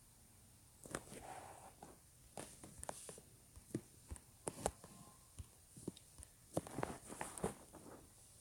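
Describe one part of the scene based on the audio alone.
Soft menu clicks tap now and then.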